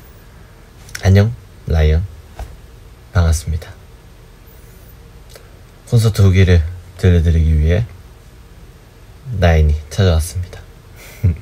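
A young man speaks in short bursts, close to the microphone, over an online call.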